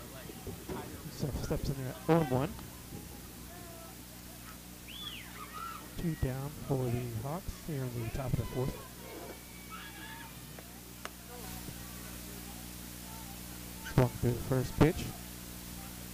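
Young women shout and chant from a distance outdoors.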